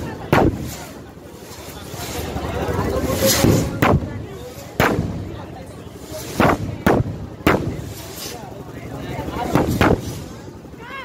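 Fireworks bang and crackle loudly overhead, again and again.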